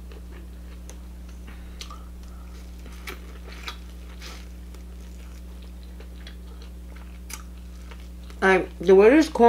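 A young woman chews and smacks food close to a microphone.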